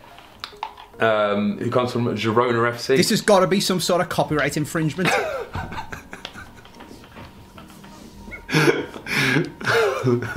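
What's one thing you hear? A young man talks and laughs with animation into a microphone.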